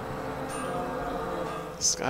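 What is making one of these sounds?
Flames roar from a burning tower.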